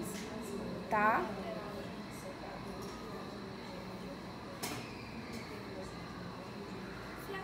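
Several people murmur quietly nearby.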